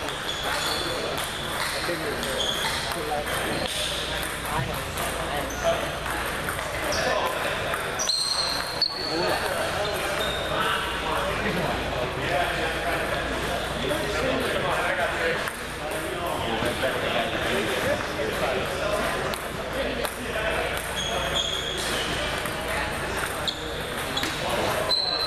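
Ping pong balls click sharply on tables and paddles in a large echoing hall.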